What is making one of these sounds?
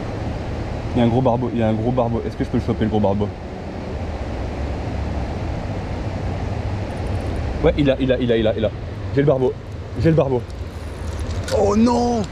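A man speaks excitedly close by.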